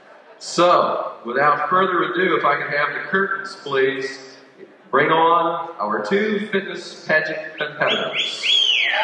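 A man speaks calmly into a microphone through loudspeakers in a large echoing hall.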